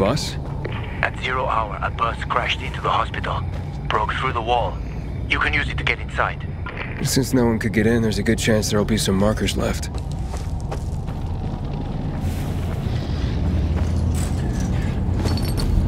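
Footsteps crunch on gravel and leaves.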